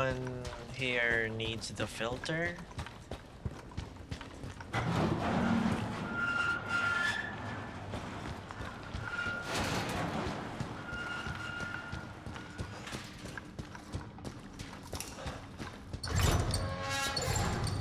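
Footsteps crunch over loose gravel and rubble.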